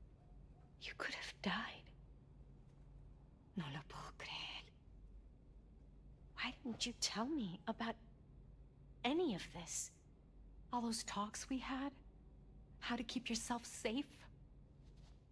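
A woman speaks softly and warmly.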